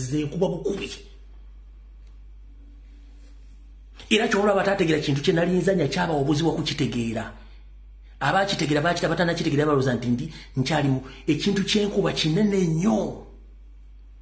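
A man speaks loudly and with animation into a phone microphone, in bursts.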